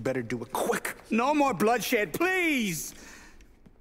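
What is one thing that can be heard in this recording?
An elderly man cries out, pleading.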